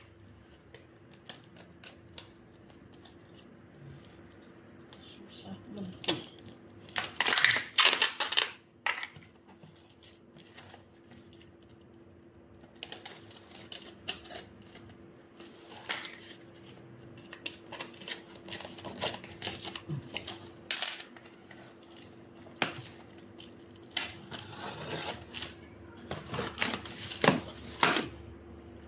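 A box cutter blade slices through packing tape on a cardboard box.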